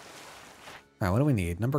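A young man speaks with animation, close to a microphone.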